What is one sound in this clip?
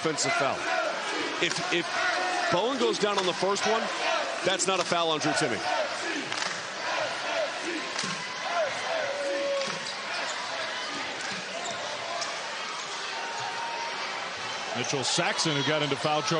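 A large indoor crowd murmurs and cheers in an echoing arena.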